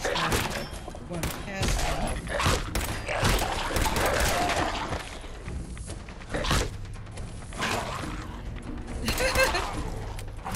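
A gun fires in loud bursts of shots.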